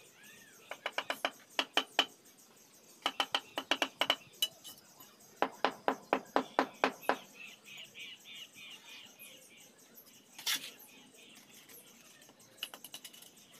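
A hammer taps sharply on brick in quick bursts.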